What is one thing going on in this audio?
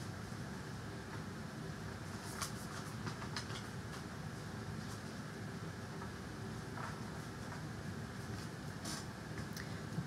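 Cards shuffle and flick softly.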